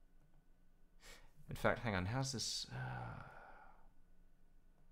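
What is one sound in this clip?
A young man speaks briefly and with animation into a close microphone.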